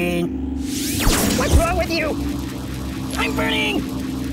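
An energy beam zaps and hums loudly.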